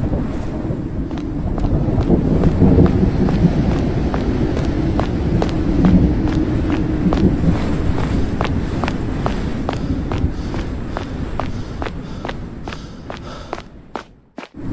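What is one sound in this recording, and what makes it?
Footsteps climb stone stairs at a quick, steady pace.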